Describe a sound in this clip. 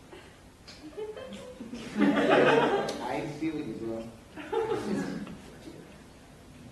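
Young performers laugh and talk loudly.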